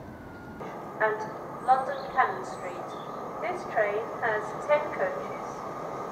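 An approaching train's wheels squeal and knock on the rails.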